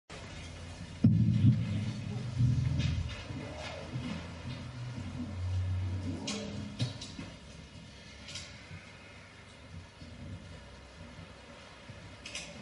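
A clarinet plays a melody.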